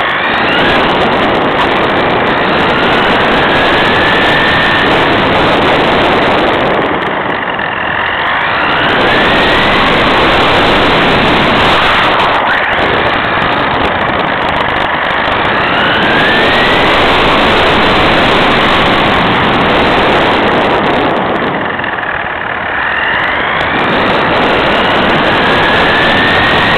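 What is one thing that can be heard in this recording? Small tyres roar steadily over rough asphalt.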